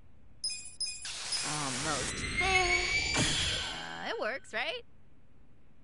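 A bright magical whoosh and sparkle swell up and then fade.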